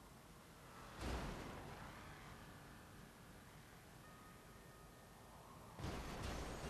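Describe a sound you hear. Cars crash into each other with a loud bang.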